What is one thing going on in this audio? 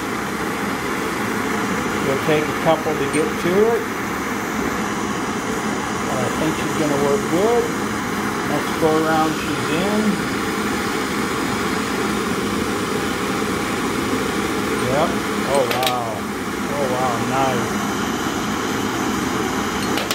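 Gas torch flames roar steadily.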